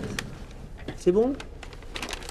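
A man says a few words.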